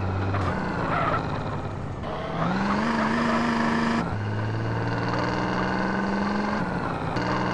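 A car engine hums and revs as the car drives over rough ground.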